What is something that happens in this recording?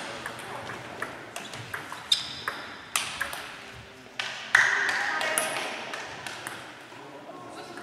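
Table tennis balls click sharply off paddles and tables in a large echoing hall.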